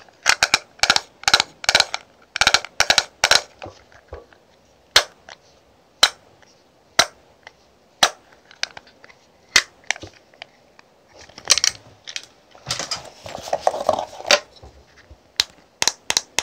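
Fingernails tap and click on a hard plastic case.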